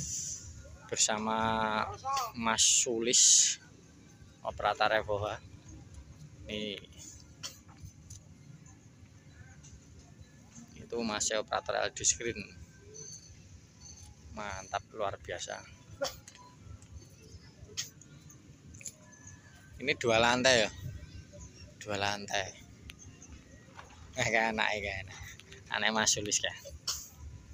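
Young men talk and call out to each other nearby, outdoors.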